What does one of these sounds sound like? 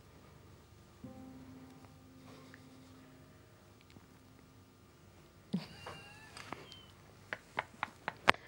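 A piano plays soft notes nearby.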